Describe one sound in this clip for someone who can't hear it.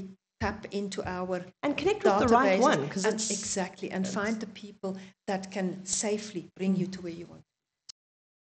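A woman speaks calmly and clearly into a microphone close by.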